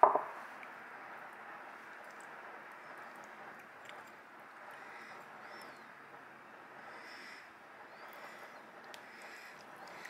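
A metal spoon scrapes softly against a shell.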